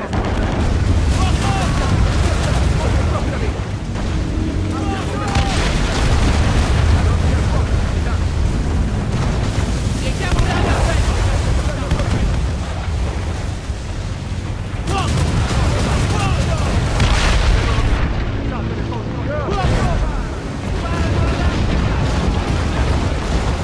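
Ocean waves crash and roar against a ship.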